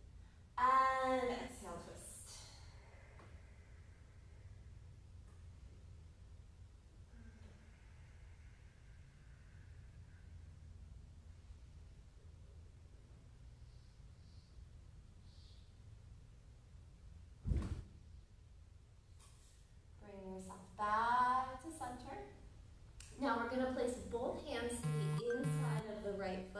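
A woman speaks calmly into a nearby microphone.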